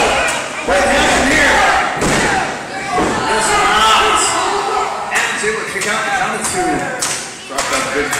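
A referee slaps the mat loudly.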